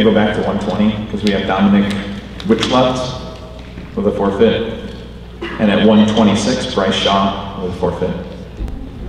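A man announces over a loudspeaker in a large echoing hall.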